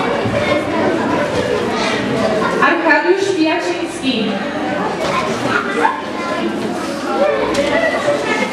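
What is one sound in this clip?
A crowd of children chatters in the background.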